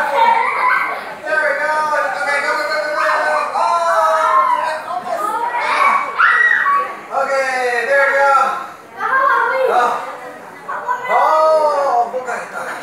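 Young children talk and squeal excitedly close by.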